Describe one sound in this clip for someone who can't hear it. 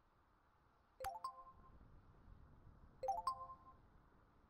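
A short electronic chime sounds twice as a message arrives.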